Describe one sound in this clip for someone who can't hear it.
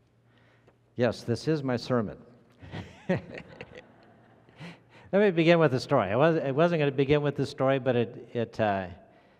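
An elderly man speaks through a microphone in an echoing hall.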